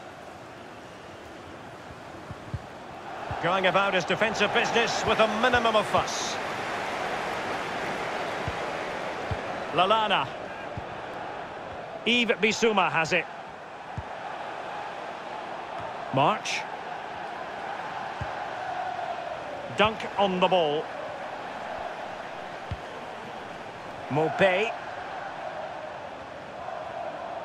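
A large stadium crowd murmurs and cheers steadily in the background.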